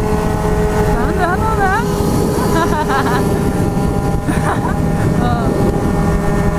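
Other motorcycle engines rev and rise and fall in pitch nearby.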